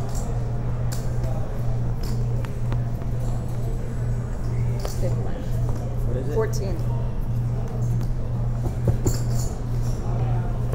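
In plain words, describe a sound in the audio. Poker chips click and clatter on a table.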